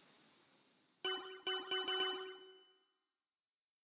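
A bright electronic jingle chimes.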